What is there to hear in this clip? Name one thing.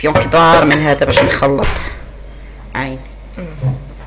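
A spoon scrapes and taps against a glass bowl.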